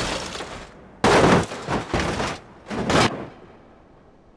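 A car tumbles down a rocky slope with repeated heavy thuds.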